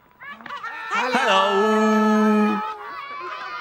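A childlike character sings a long, high note.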